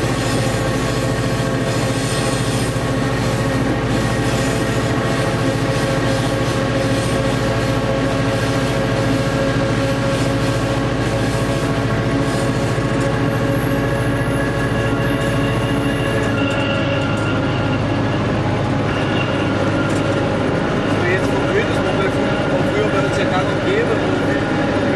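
A train engine hums and drones steadily.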